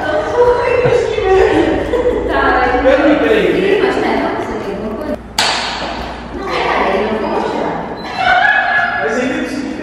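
Two young women chat and laugh nearby.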